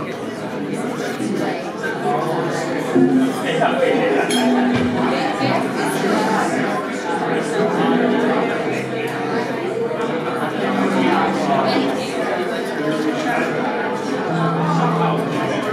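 A jazz band plays a lively tune.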